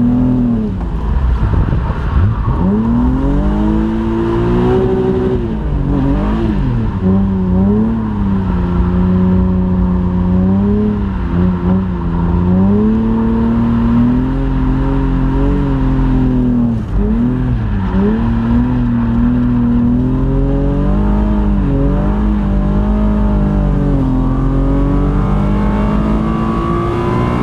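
Tyres skid and hiss on a wet surface.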